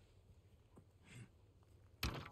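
A wooden ladder is picked up with a scrape.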